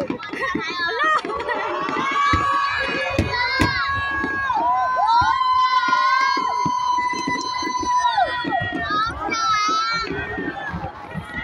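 Fireworks boom and crackle overhead.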